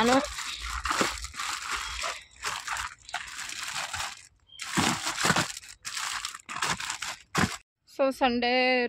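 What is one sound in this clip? Plastic packets crinkle and rustle as they are handled close by.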